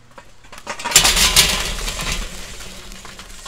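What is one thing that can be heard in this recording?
Hot charcoal pours out of a metal chimney with a loud rushing clatter.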